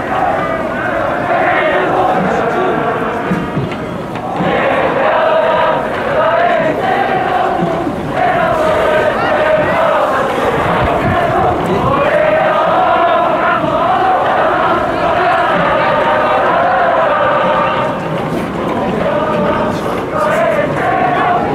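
A large crowd chants and sings steadily in an open stadium.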